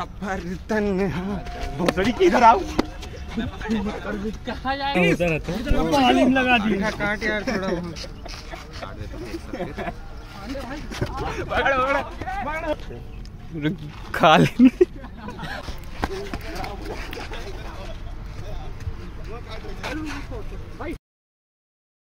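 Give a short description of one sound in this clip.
Several young men talk and laugh loudly close by, outdoors.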